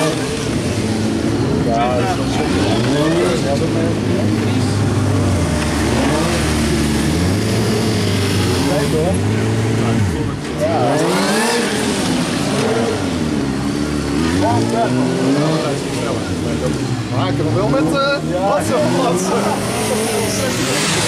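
A motorcycle engine revs up and down over and over.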